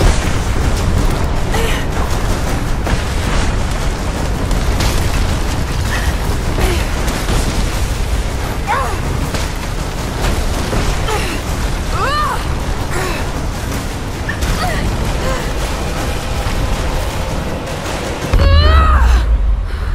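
A strong wind howls and roars steadily outdoors.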